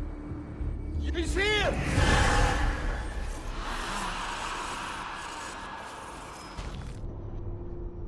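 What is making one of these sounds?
An electronic whooshing hiss swells and cuts off.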